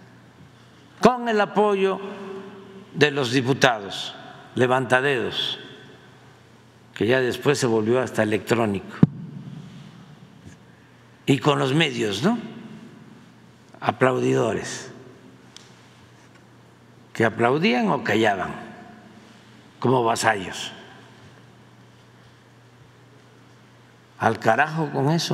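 An elderly man speaks slowly and with emphasis into a microphone, in bursts with pauses.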